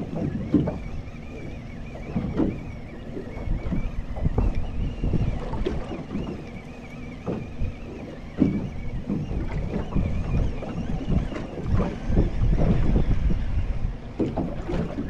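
Wind blows across open water outdoors.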